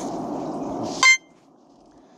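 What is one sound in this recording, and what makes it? A short electronic chime sounds from a game.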